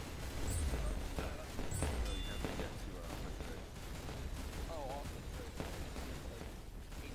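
Gunshots and explosions boom in quick bursts.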